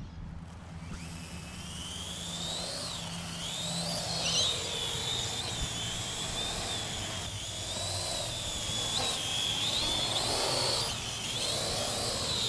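A small drone's propellers whine and buzz as it lifts off and flies.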